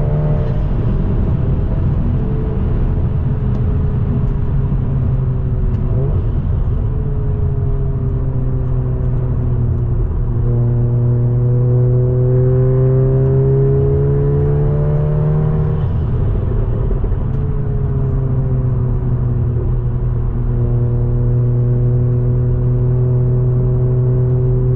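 A car engine roars loudly from inside the car, rising in pitch as it speeds up and dropping at each gear change.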